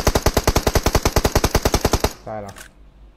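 Rapid automatic gunfire rattles close by.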